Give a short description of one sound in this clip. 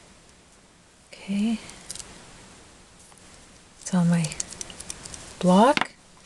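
A plastic stamp block clicks and taps as it is handled.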